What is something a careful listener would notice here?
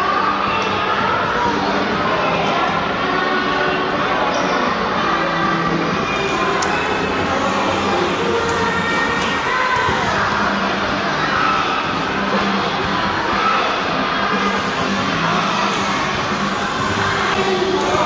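Many young children chatter and call out in a large echoing hall.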